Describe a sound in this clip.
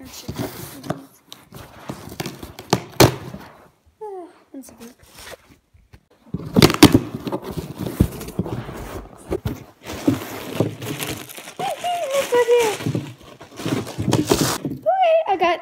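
Cardboard rustles and scrapes as a box is handled up close.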